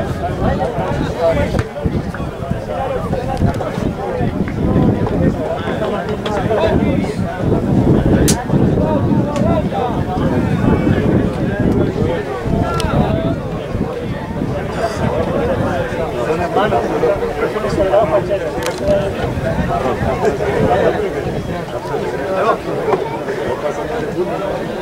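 Young men call out to each other outdoors at a distance.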